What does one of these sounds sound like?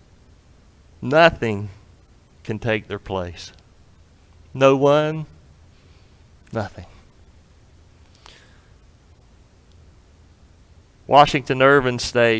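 A man speaks slowly and deliberately through a microphone, with long pauses.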